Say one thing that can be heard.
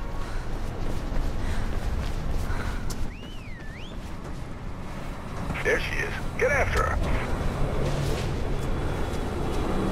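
Footsteps run quickly across a hard rooftop.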